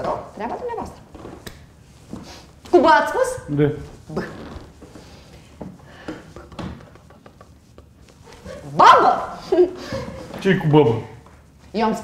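An elderly woman speaks with animation.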